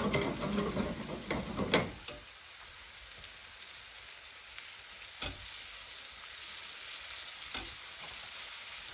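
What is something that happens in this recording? Food sizzles gently in a hot pan.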